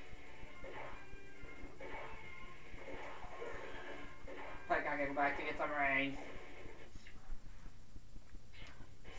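Video game music plays from a television speaker.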